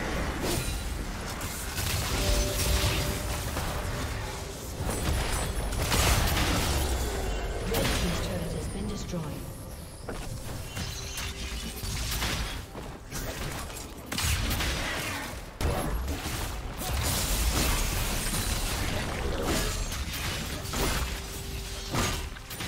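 Game spell effects whoosh, crackle and boom during a hectic battle.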